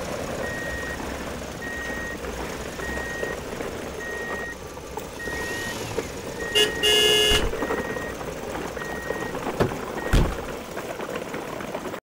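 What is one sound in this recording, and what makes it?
Plastic toy trucks rattle and clatter as they roll over a dirt path.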